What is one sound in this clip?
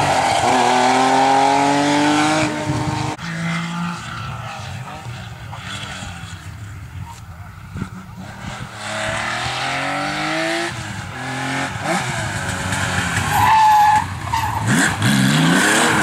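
A rally car engine roars and revs hard, its pitch rising and dropping with each gear change.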